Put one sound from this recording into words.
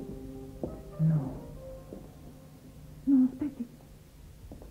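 A woman speaks quietly and seriously, close by.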